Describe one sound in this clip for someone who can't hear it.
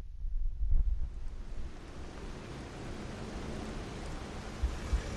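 A soft magical shimmer hisses and sparkles.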